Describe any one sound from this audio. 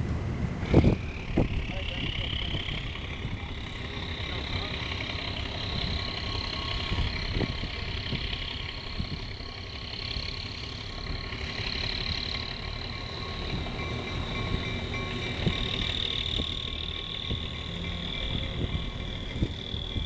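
Locomotive wheels squeal on the rails.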